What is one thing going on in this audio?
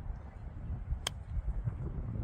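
A golf club strikes a ball with a crisp click.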